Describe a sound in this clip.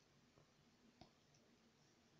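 A plastic jar is set down on a table with a soft knock.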